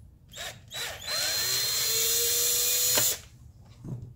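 A cordless drill whirs briefly, driving a screw.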